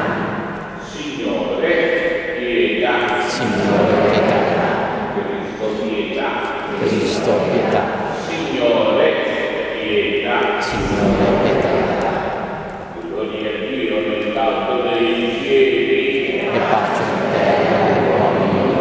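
A man chants in long sung phrases, echoing in a large hall.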